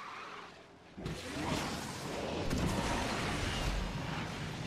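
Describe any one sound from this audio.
A nitro boost whooshes loudly.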